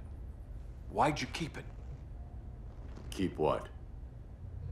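A man speaks briefly in a deep, calm voice.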